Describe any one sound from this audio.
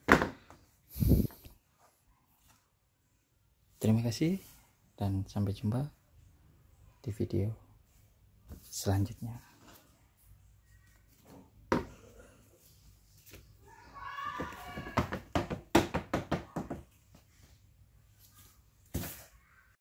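Rubber sandals are shuffled and tapped against a hard floor.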